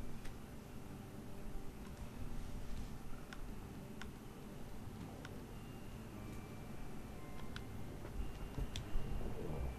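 Soft menu ticks sound as a slider is moved step by step.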